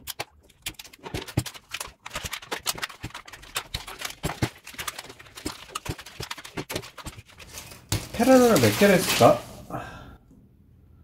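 Plastic tape crinkles and rustles as hands peel it away.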